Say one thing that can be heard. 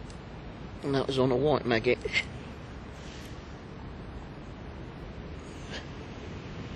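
Wind blows softly outdoors over water.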